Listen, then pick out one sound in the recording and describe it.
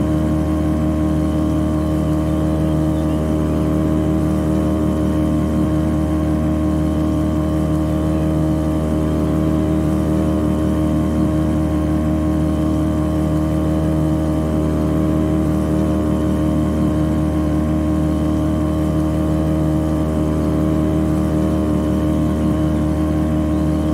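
A boat engine drones steadily at high speed.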